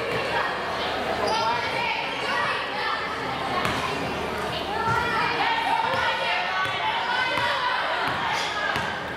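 Spectators near the microphone chatter and call out in a gym that echoes.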